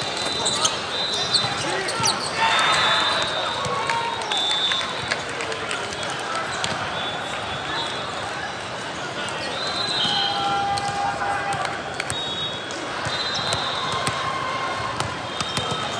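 Young players shout and call out to each other across the hall.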